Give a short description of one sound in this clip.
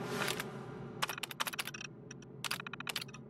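Rapid clicks sound as text prints on an old computer terminal.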